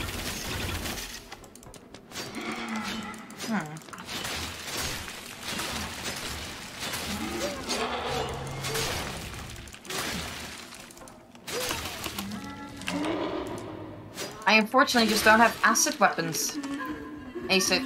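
Blades clash and slash with sharp impacts in a game fight.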